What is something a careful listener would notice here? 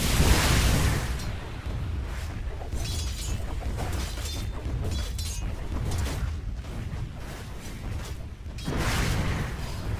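Spell effects crackle and whoosh in a game battle.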